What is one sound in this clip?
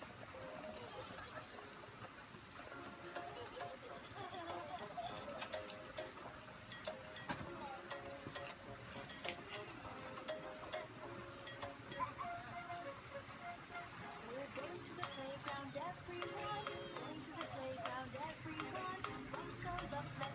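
A toy plays a tinkling electronic tune.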